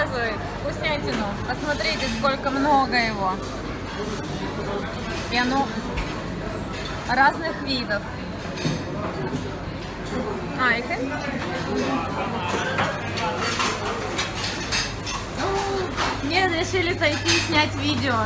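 Men and women chatter nearby in a busy indoor space.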